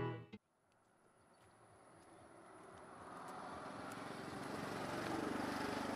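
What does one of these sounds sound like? Footsteps crunch slowly on a gravel path outdoors.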